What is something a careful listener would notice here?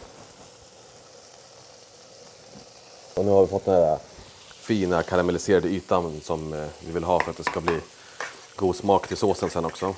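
Meatballs sizzle in a frying pan.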